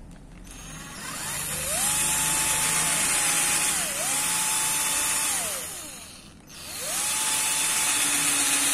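A power drill whirs, speeding up and slowing down as it bores into a knife handle.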